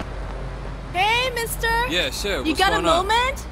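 A young woman calls out and talks casually.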